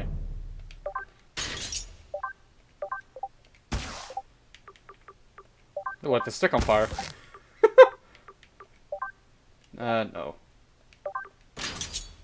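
Short electronic blips sound as menu selections change.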